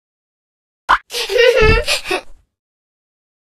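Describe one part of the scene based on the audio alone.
A cartoon cat character makes a short cheerful voice sound.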